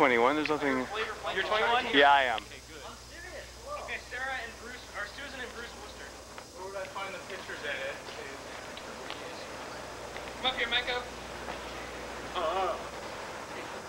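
Young men talk and shout with animation from above, heard outdoors.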